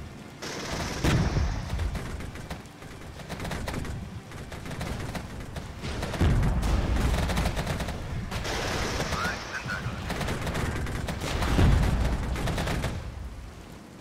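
Explosions boom with a low rumble.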